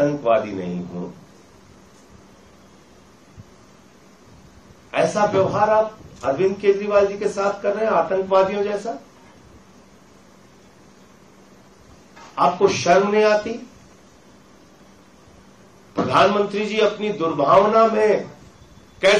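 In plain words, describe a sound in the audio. A middle-aged man speaks firmly into microphones, in bursts with pauses.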